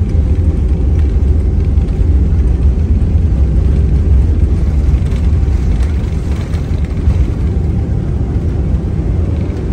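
Aircraft engines roar with a steady, deep drone inside the cabin.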